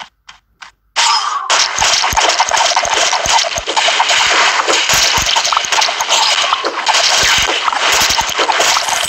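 Dense game battle effects crackle and burst steadily.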